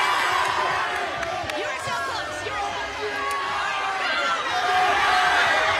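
A large crowd of teenagers cheers and shouts loudly in an echoing hall.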